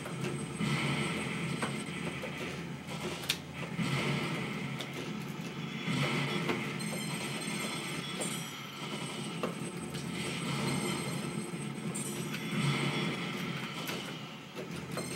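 Arcade game gunfire rattles through a small loudspeaker.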